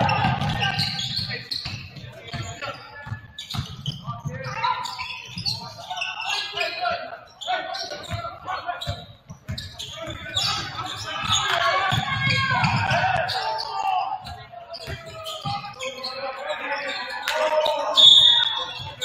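A basketball bounces on a hardwood court in a large echoing gym.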